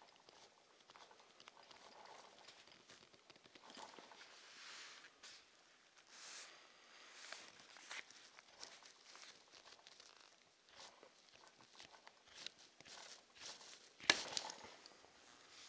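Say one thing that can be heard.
Fingers rub and scratch softly on leather.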